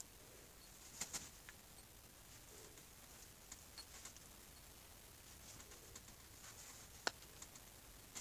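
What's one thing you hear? A rotary carving tool scrapes and grinds against wood in short bursts.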